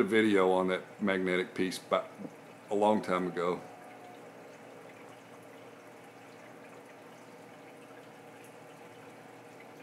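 Water gently bubbles and trickles in a fish tank.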